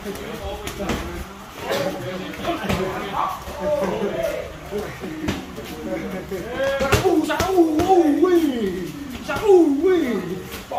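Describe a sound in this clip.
Gloved punches and kicks thud sharply against training pads.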